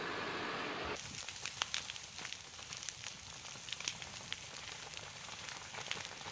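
Burning brush crackles and pops nearby.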